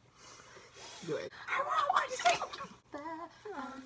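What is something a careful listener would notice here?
Young women laugh together.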